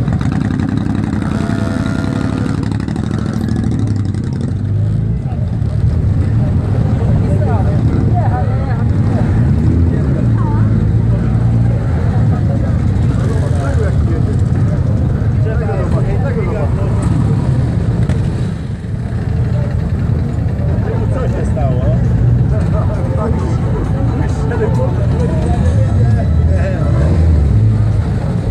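Motorcycle engines rumble and idle close by.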